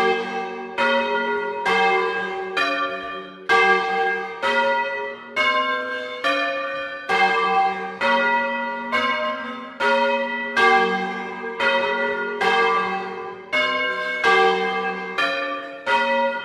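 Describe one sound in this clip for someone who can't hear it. Four large church bells swing and ring close by in a tower, pealing one after another.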